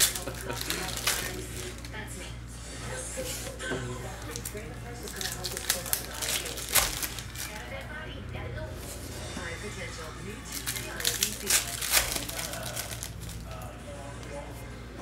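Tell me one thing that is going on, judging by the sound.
Trading cards rustle and crinkle as they are shuffled by hand.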